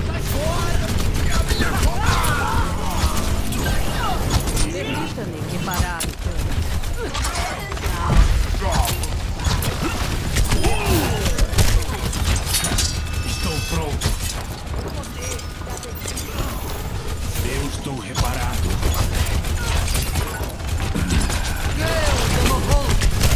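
Energy weapons fire and zap in rapid bursts.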